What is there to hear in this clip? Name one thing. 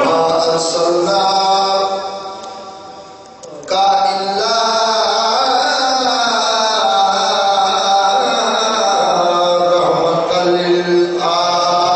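A man chants with feeling into a microphone, his voice loud and echoing.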